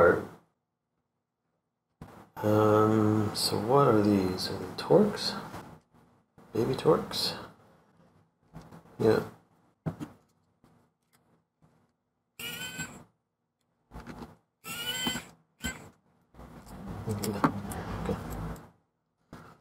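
A middle-aged man talks calmly and close to a microphone, with pauses.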